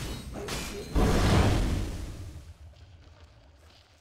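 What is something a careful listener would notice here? A big magical blast booms and fades.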